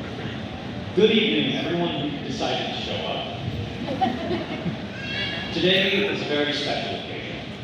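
A young woman speaks into a microphone, heard through loudspeakers in a large hall.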